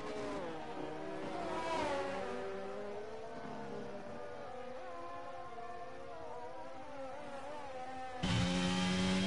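A racing car engine whines at high revs, its pitch shifting as it passes.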